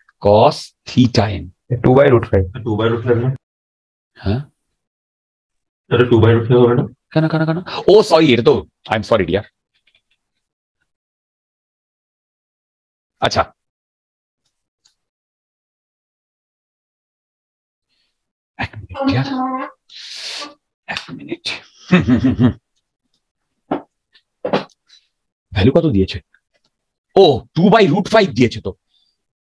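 A man explains calmly into a close microphone, with pauses.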